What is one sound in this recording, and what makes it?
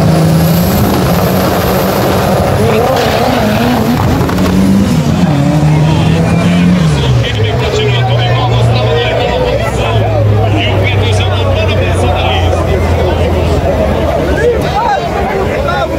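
A car engine revs loudly, then roars as the car speeds away.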